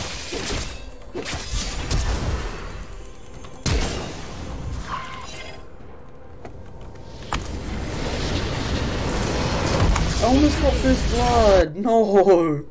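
Fight sound effects crackle and boom in a video game.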